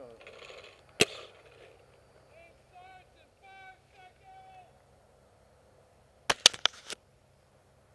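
A paintball gun fires single sharp shots close by.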